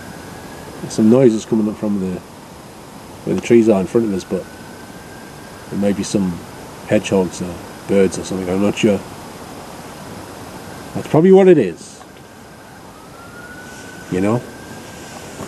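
A middle-aged man speaks calmly in short bursts, close by.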